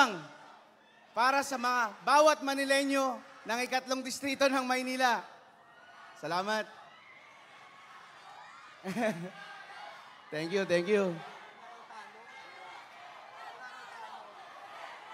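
A crowd murmurs and cheers in the background.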